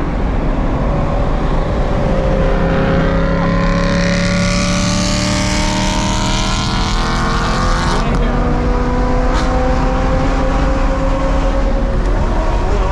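Tyres and wind rush loudly on a highway.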